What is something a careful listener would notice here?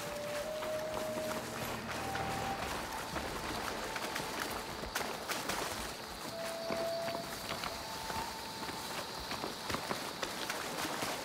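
Footsteps run over rocky ground.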